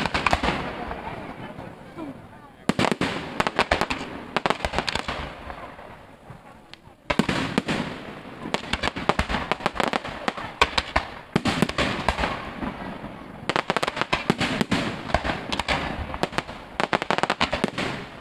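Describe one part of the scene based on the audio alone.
Fireworks whistle and hiss as they shoot upward.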